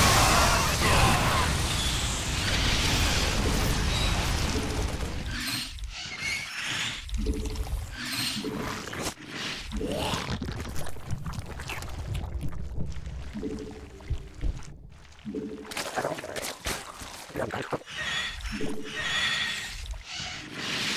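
Electronic battle sound effects crackle and blast.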